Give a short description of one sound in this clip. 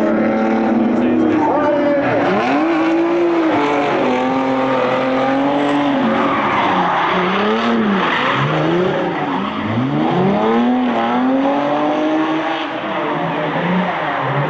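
Car tyres screech as they slide on asphalt.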